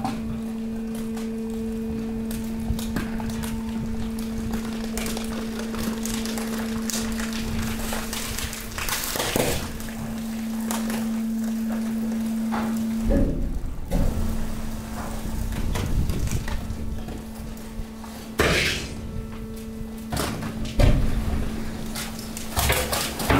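A machine motor hums steadily throughout.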